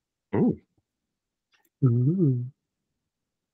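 A woman speaks with animation through an online call.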